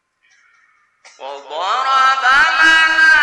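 A young man chants in a long, melodic voice into a microphone, heard through a loudspeaker with echo.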